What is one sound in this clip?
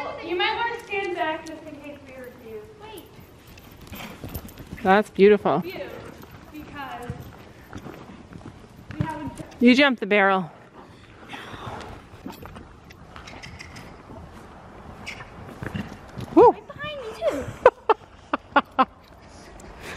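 A young girl talks and calls out excitedly close by.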